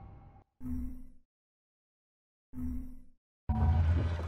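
Short electronic beeps sound as a menu is clicked through.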